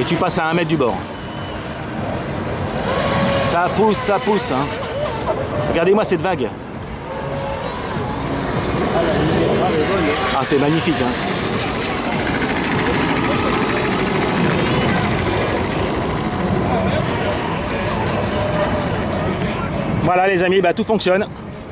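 A small model boat motor hums steadily on the water.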